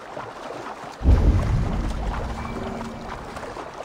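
Water splashes as a swimmer climbs out of a lake.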